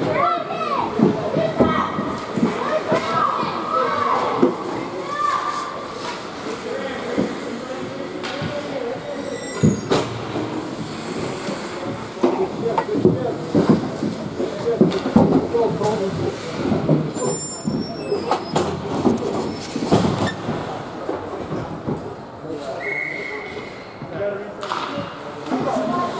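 Skates scrape and hiss on ice in a large echoing arena.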